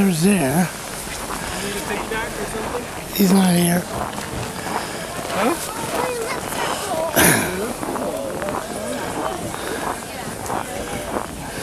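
Men and women chat quietly in the background outdoors.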